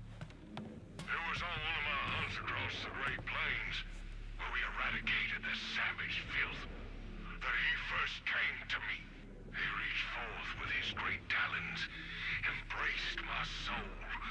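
A man's voice speaks slowly and ominously through an old radio.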